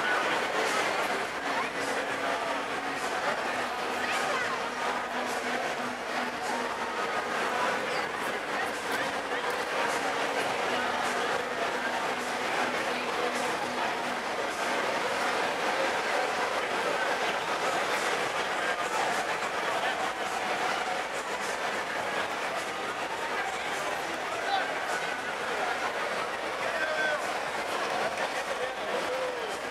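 Men talk nearby in low voices.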